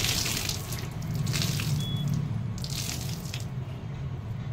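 Water drips and splashes onto a wet floor.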